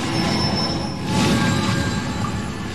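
A bright magical shimmer swells as a burst of light flares.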